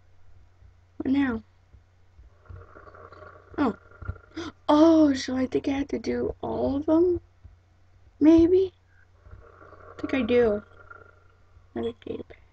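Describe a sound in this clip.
A boy speaks with animation close to a microphone.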